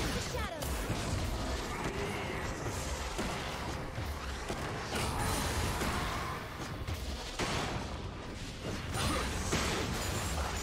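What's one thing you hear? Weapons strike and clash in rapid blows.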